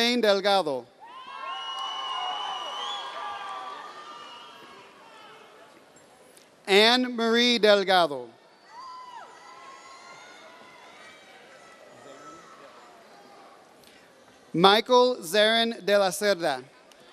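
A man announces names over a loudspeaker in a large echoing hall.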